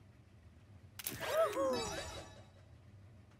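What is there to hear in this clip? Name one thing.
A short cheerful jingle plays.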